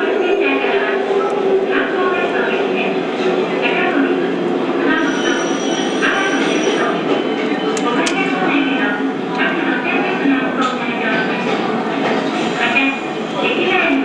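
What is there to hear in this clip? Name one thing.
Passengers chatter quietly nearby.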